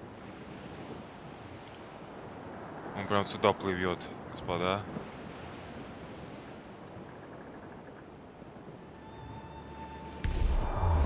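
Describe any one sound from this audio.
Waves splash and rush against a sailing ship's hull.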